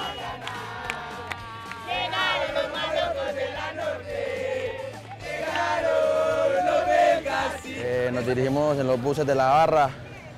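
A crowd of young men and women chant and sing loudly outdoors.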